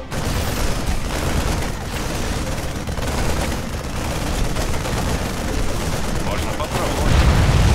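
Rapid gunfire rattles in a busy battle.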